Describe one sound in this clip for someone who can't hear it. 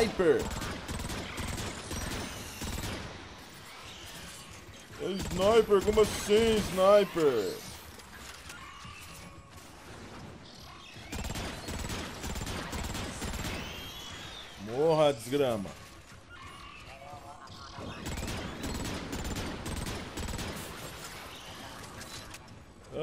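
A rapid-fire energy gun shoots in quick bursts.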